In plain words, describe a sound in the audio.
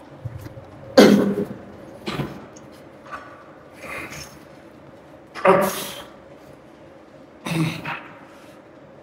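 A man grunts and breathes hard with effort.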